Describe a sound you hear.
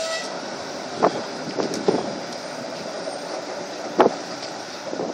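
Tram wheels clatter and knock over rail joints.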